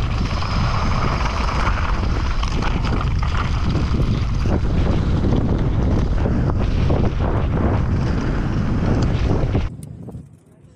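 Bike tyres crunch and rattle over loose gravel at speed.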